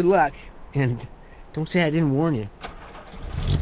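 An elderly man calls out animatedly nearby.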